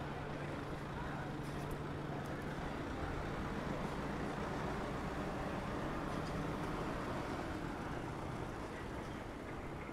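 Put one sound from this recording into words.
An engine idles steadily nearby.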